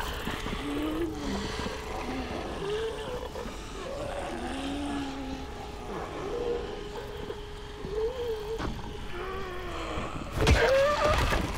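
Zombies groan and snarl nearby.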